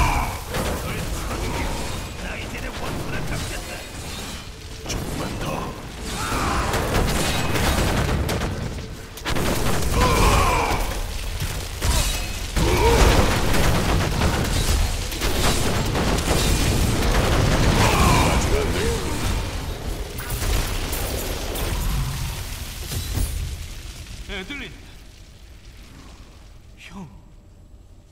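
Blows strike and clash against monsters.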